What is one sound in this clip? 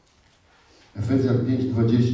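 A man speaks loudly through a microphone and loudspeakers in an echoing hall.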